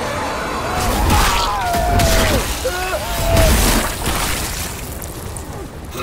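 Heavy blows thud wetly against a body.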